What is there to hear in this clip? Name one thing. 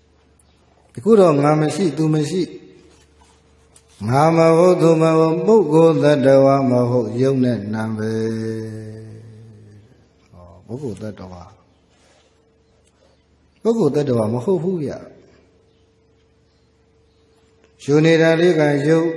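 A man speaks slowly and in a drawn-out voice through a microphone, in bursts with long pauses.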